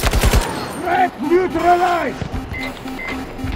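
A warning tone beeps repeatedly.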